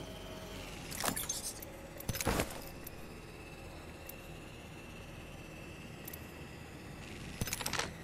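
Short clicks tick as items are picked up.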